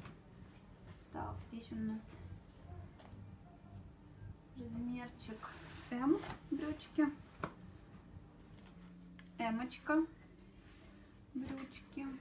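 Fabric rustles softly.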